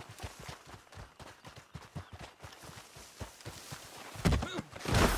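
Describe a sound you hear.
Footsteps run quickly over dry dirt.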